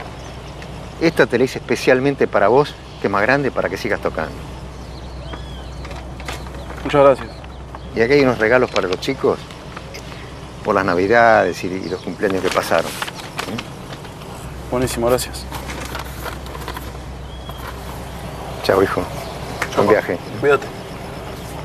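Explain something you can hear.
A young man answers quietly, close by.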